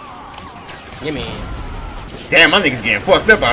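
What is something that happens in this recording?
A young man talks loudly and with animation close to a microphone.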